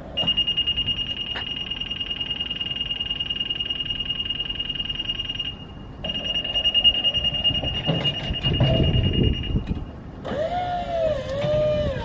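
An electric lift motor hums.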